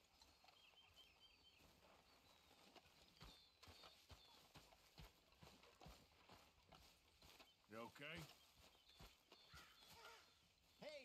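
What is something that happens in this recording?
Footsteps walk steadily over grass and dirt.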